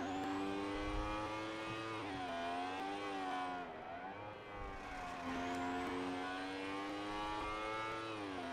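A motorbike engine roars at high revs, its pitch rising and falling.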